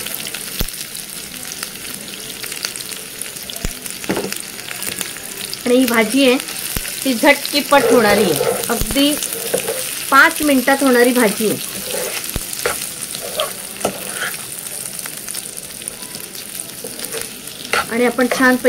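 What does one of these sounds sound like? Food sizzles softly in a pan.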